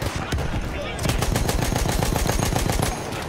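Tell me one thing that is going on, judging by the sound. A machine gun fires rapid bursts up close.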